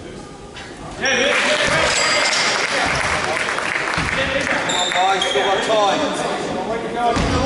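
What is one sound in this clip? Young players and spectators shout and call out loudly in an echoing hall.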